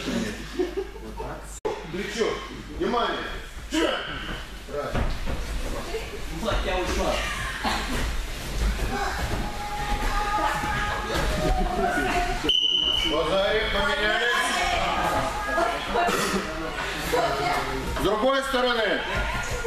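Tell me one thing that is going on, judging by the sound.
Bodies thump and shuffle on padded mats.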